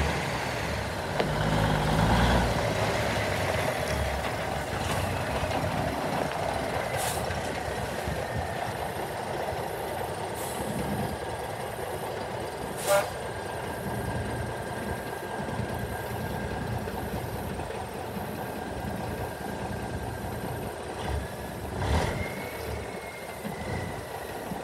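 A diesel truck engine idles with a low rumble.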